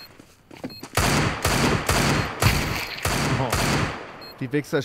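Gunshots ring out in rapid bursts.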